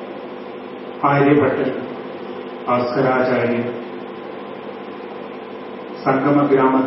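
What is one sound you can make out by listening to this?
An elderly man speaks slowly and calmly into a microphone, heard through a loudspeaker, with pauses between phrases.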